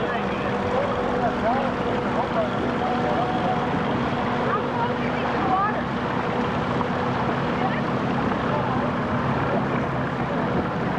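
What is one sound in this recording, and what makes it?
Paddle wheels churn and splash through the water.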